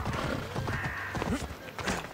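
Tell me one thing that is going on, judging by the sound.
A horse's hooves clop on hard ground.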